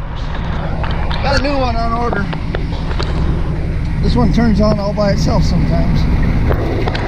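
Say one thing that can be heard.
An elderly man speaks calmly close to the microphone.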